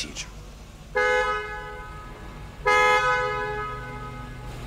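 A car horn honks twice.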